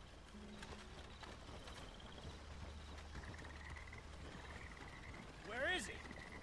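A horse-drawn cart rolls along a dirt track.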